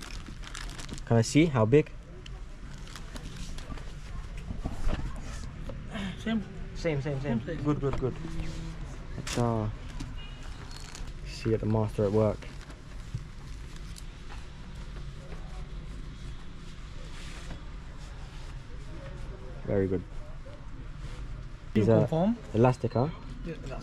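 Fabric rustles as a garment is handled.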